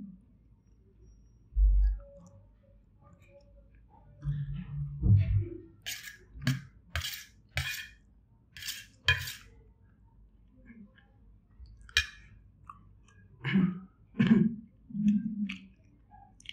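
A man chews and smacks his lips close by.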